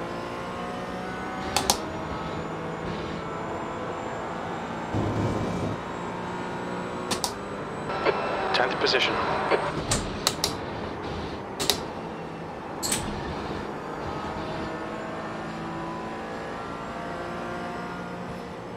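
A racing car engine drones and shifts pitch as it speeds along.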